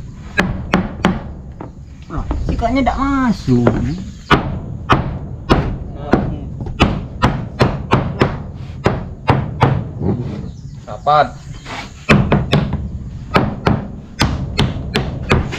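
A hammer knocks sharply on wood in quick repeated blows.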